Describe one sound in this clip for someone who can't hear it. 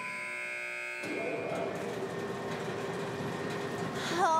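A conveyor belt rumbles steadily.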